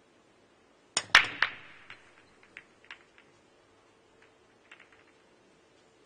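A cue strikes a ball sharply, and the balls clack together and knock around the table.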